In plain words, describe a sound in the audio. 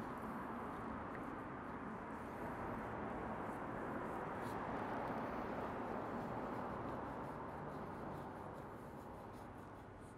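A knife slices softly through raw meat.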